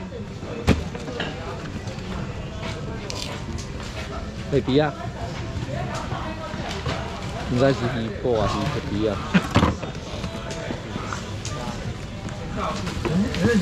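Cardboard rustles as a box is handled.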